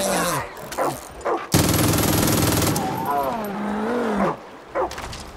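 A bear growls and roars.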